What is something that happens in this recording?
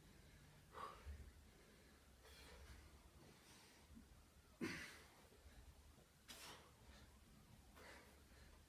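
A man breathes out sharply and heavily with each push-up.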